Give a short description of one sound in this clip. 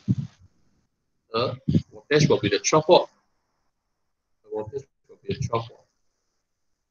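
A young man speaks calmly into a microphone, as if explaining, in short bursts with pauses.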